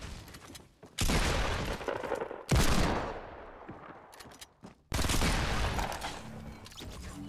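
Gunshots ring out loudly in short bursts.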